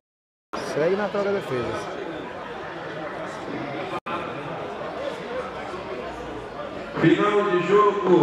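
Spectators chatter and murmur nearby.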